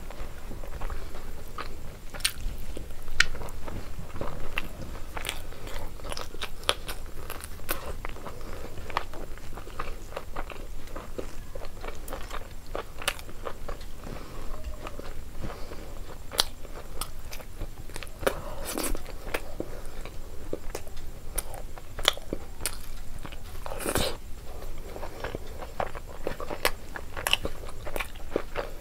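A young woman chews and smacks her lips close up.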